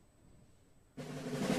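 A wind band starts playing loudly in a large hall.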